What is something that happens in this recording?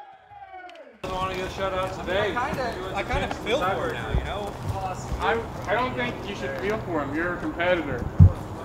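A group of young men and women cheer and talk outdoors.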